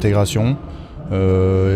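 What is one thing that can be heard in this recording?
A young man answers calmly into a microphone.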